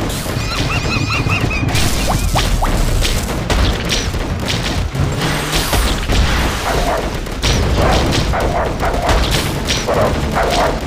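Explosions burst repeatedly.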